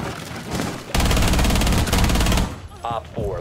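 A submachine gun fires a rapid burst close by.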